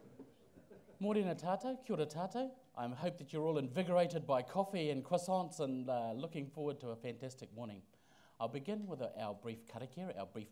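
A man speaks calmly into a microphone over loudspeakers in a large room.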